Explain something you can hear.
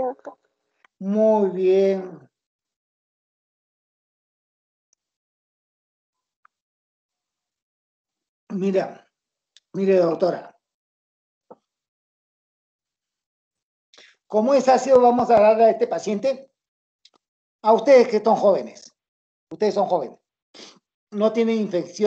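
An older man speaks calmly in bursts over an online call.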